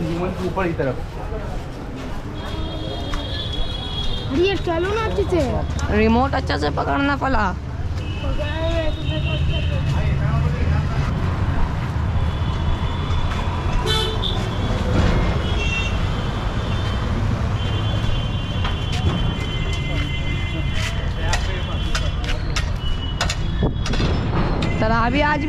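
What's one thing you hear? A crowd murmurs in a busy street.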